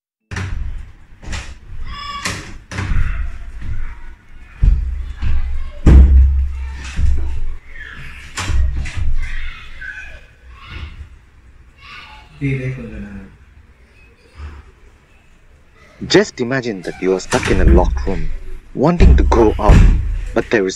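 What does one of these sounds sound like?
A wooden door rattles and knocks against its frame as it is pushed and pulled.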